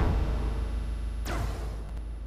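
A laser beam crackles and buzzes loudly, then cuts off.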